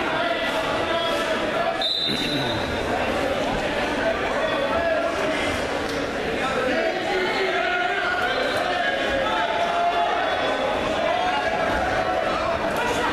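A crowd of young people talks and calls out in a large echoing hall.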